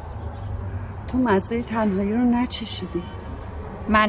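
A woman speaks calmly, close by.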